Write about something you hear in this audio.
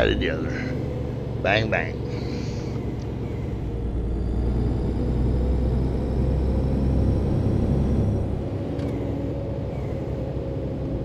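Tyres roll on a highway.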